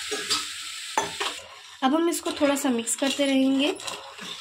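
A spoon stirs and knocks against a metal pan.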